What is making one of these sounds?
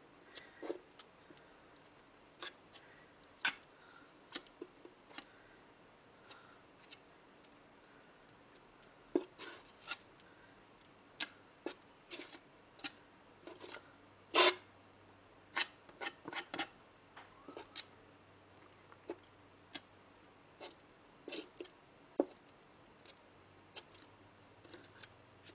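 A palette knife scrapes across paper.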